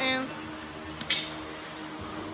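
A metal gate latch clanks.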